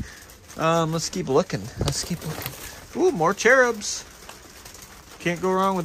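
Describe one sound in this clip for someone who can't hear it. Plastic packaging crinkles as a gloved hand moves it.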